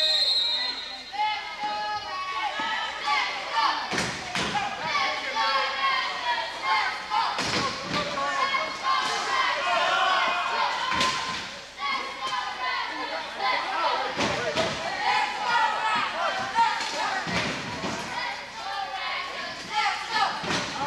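A crowd of men and women shout and cheer in a large echoing hall.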